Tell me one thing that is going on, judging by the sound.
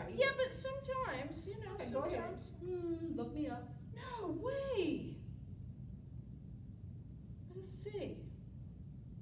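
A woman speaks in a lively, animated voice close by.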